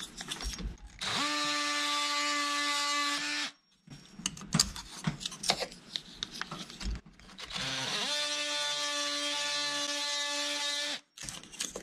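A power tool whirs with a steady high buzz.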